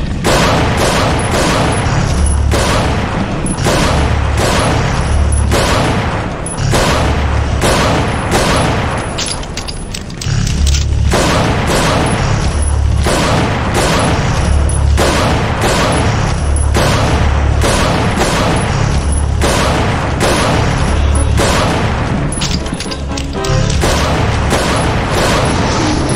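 Handgun shots ring out one after another.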